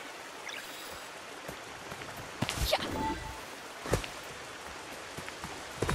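A stream of water trickles and flows nearby.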